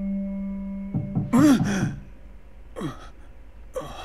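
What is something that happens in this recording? A man moans and gasps close by.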